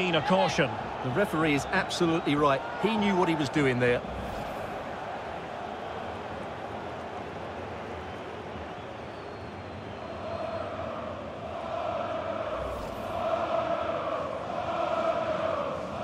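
A large stadium crowd roars and swells.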